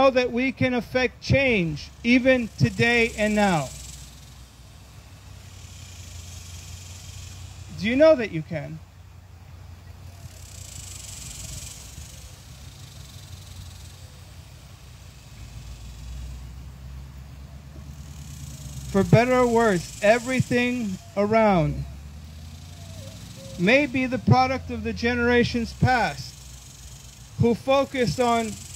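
A man speaks into a microphone in pauses, heard through a loudspeaker outdoors.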